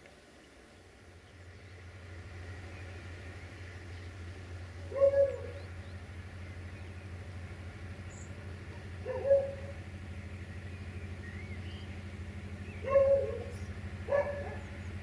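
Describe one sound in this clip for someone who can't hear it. A diesel locomotive engine rumbles steadily as it approaches.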